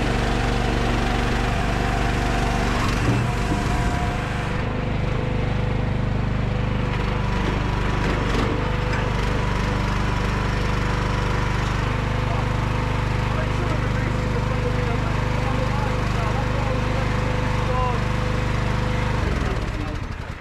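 A firewood processor's engine runs with a steady low drone outdoors.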